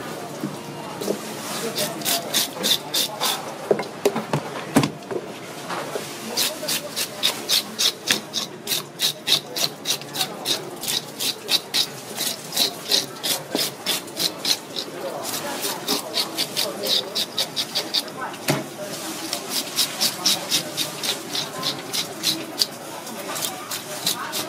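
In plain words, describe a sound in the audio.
A brush scrapes rapidly over fish skin in quick rasping strokes.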